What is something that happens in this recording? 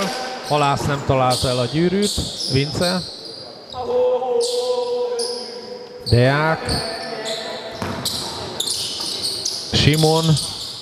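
Men shout to each other in a large echoing gym.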